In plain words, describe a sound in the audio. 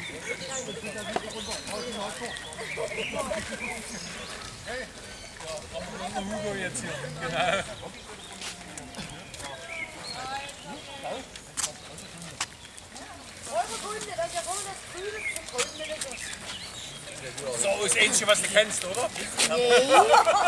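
A group of men and women chat outdoors at a distance.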